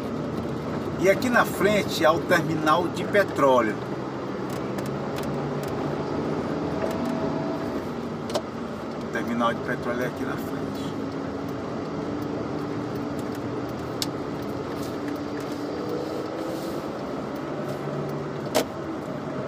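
A car engine hums steadily as tyres roll on the road.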